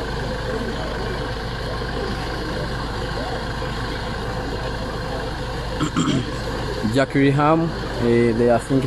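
A crowd of people murmurs and talks outdoors.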